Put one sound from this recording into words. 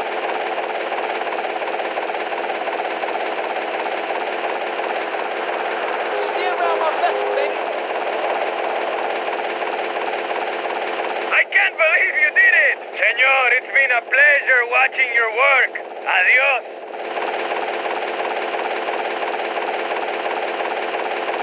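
A helicopter's rotor whirs steadily overhead.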